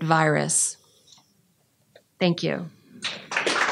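A middle-aged woman speaks into a microphone.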